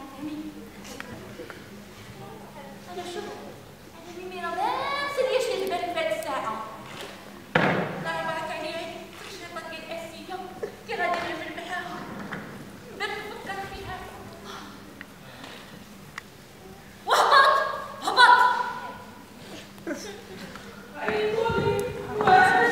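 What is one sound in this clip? A woman answers in a lively voice.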